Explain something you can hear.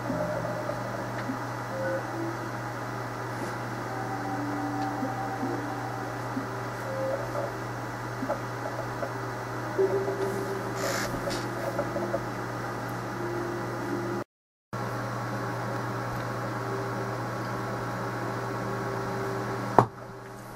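A low electronic hum drones steadily.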